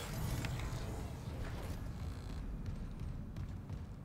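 Heavy footsteps clank on a metal floor.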